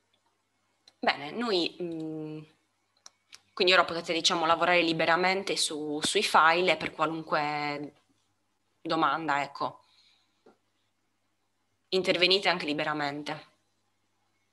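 A young woman speaks calmly in short bursts through an online call.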